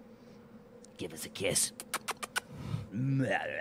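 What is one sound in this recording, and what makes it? A man talks casually, heard through a microphone.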